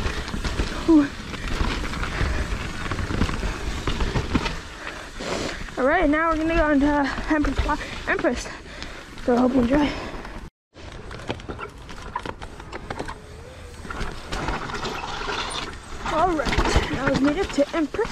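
Bicycle tyres rumble and crunch over a rough dirt and rock trail.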